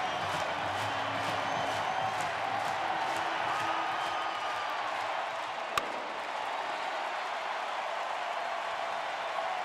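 A large crowd cheers and claps rhythmically.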